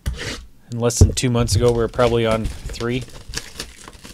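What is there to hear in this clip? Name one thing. Plastic wrapping crinkles as hands handle a box.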